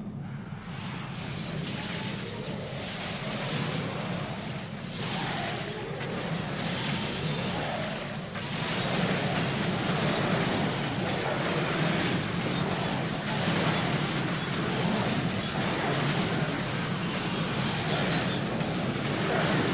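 Swords clash and spells crackle in a fast fight.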